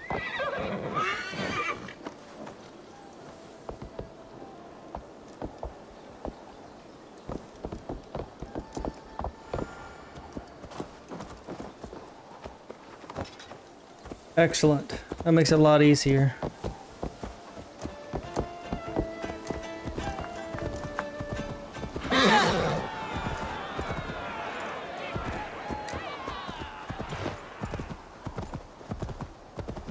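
Horse hooves clop steadily on wooden planks and then on a dirt path.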